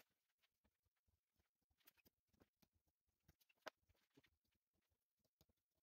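Small wooden pieces click and clatter as they are handled.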